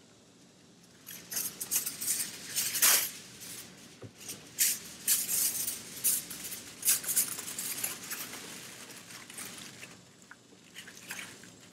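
A thin plastic sheet crinkles and rustles in someone's hands.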